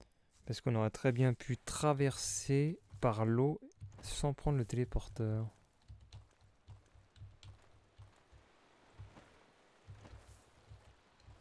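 Footsteps tread softly over grass and earth.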